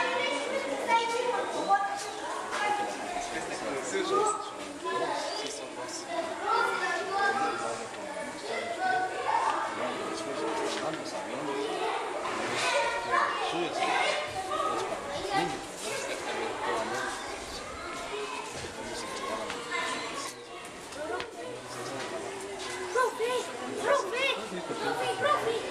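A middle-aged man speaks at close range outdoors.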